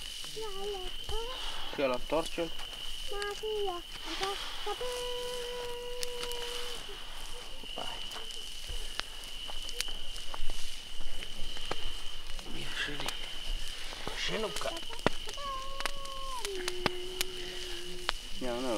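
Glowing embers crackle and pop softly.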